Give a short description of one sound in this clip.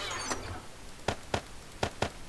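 A wooden chest lid creaks open with a clunk.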